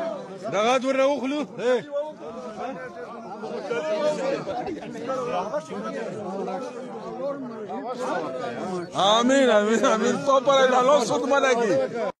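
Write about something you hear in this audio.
A crowd of men talk loudly and call out close by, outdoors.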